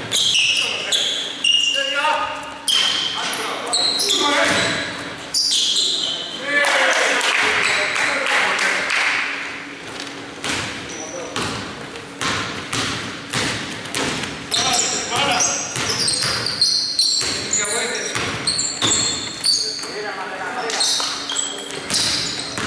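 Basketball shoes squeak on a hardwood court in an echoing gym.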